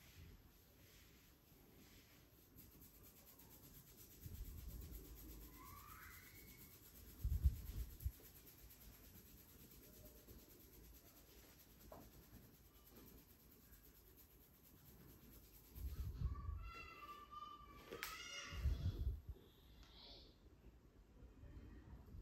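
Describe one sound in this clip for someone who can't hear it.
Fingers rub and scratch through hair close by.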